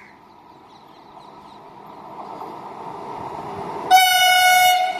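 A train approaches, growing steadily louder.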